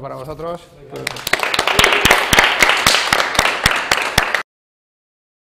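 A small group applauds in a room.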